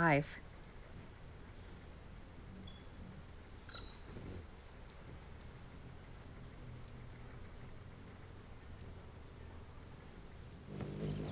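A hummingbird's wings buzz as it hovers close by.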